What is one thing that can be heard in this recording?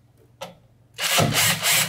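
An electric screwdriver whirs briefly.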